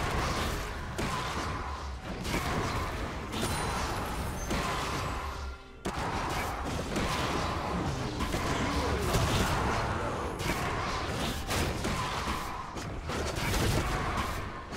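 Fantasy battle sound effects of magic blasts and weapon strikes crackle and boom.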